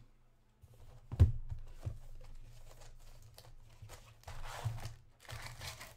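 Cardboard rustles and scrapes as a box is opened by hand.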